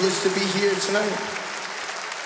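A man sings close into a microphone.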